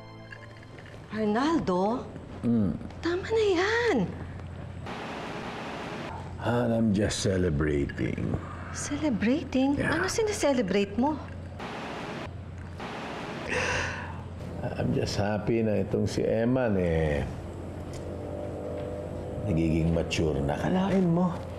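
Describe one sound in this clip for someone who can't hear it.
A middle-aged man speaks in a low, emotional voice close by.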